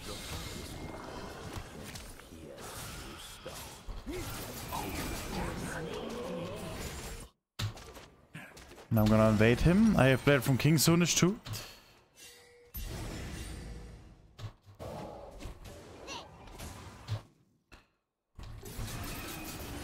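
Game combat sounds of spells and hits ring out.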